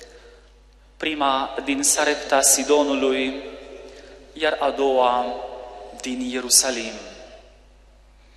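A man speaks calmly into a microphone in an echoing hall.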